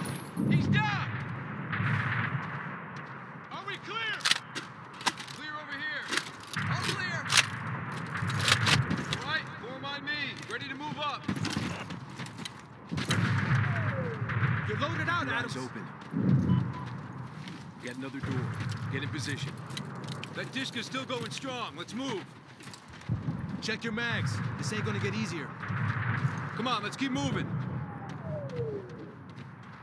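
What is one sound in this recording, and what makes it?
A man calls out orders loudly.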